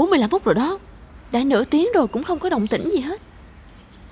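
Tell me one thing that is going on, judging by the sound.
A young woman speaks quickly and with animation, close by.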